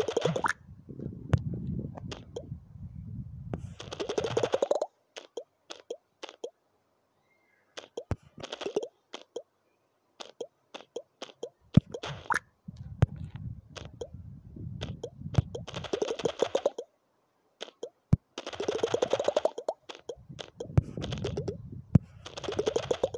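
Layers smash apart in rapid crunching bursts.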